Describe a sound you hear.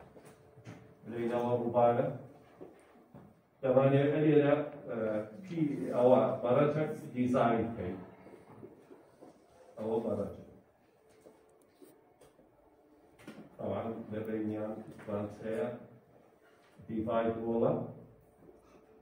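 A man lectures calmly nearby.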